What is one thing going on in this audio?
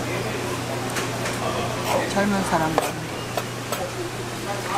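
A knife taps on a cutting board.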